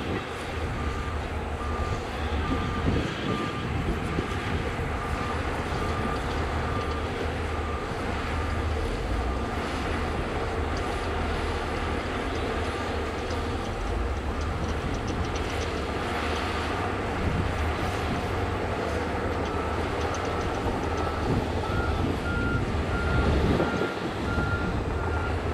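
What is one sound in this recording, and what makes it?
A machine's warning alarm beeps in a quick, even rhythm.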